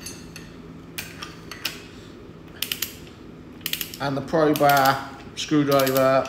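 Metal tools clink and click against an engine part.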